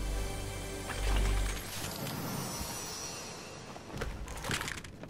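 A treasure chest creaks open with a shimmering chime.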